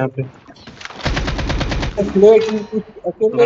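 Rapid gunfire rattles in a quick burst.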